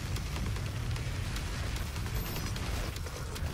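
Flames roar in a loud blast.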